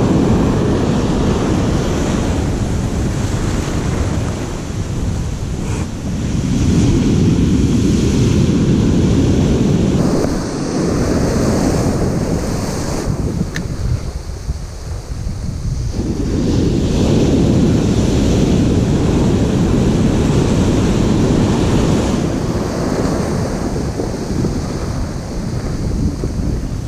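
Waves crash and surge onto the shore nearby.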